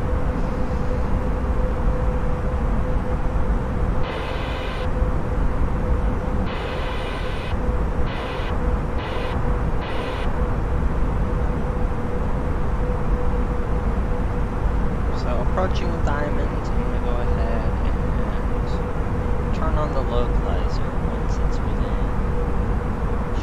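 A steady jet engine roar drones on.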